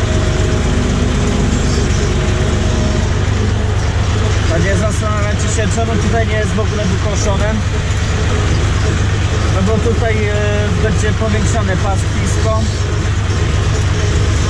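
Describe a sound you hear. A tractor engine drones loudly and steadily up close.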